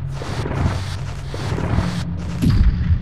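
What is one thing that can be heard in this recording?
A heavy stone block scrapes along a stone floor in a video game.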